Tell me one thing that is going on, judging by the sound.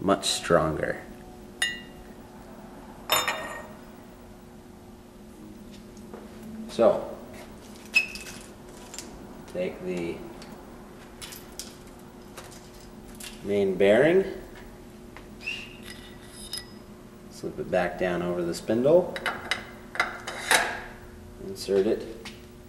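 Plastic parts click and knock as hands handle them.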